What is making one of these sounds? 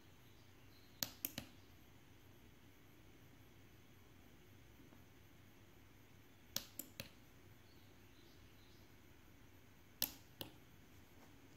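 Small push buttons click sharply several times.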